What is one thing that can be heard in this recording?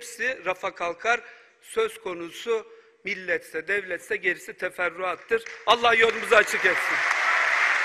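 A man speaks forcefully into a microphone in a large echoing hall.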